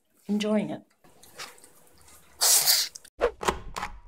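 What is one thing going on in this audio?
A dog eats noisily from a bowl.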